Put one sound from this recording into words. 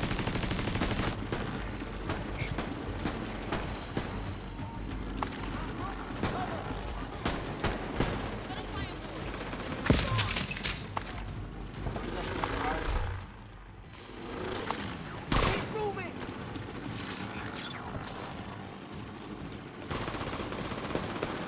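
Footsteps crunch on rubble as a figure runs.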